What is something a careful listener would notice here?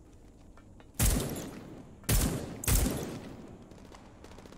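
A rifle fires three loud shots that echo away.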